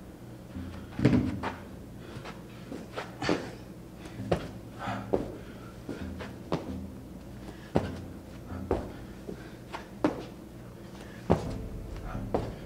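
Feet and hands thud on a padded floor at a steady pace.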